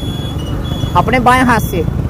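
A motorcycle engine runs close by.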